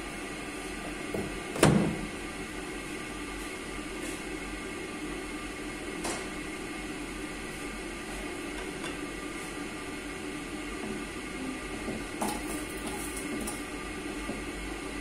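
A gas burner hisses under a pot.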